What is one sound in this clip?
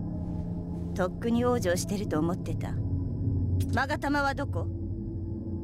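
A young woman speaks calmly, then asks a sharp question.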